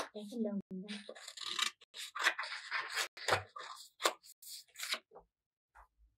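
A sheet of paper rustles and crinkles as it is handled.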